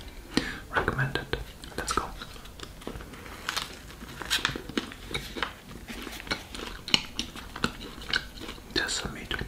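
A man chews food noisily close by.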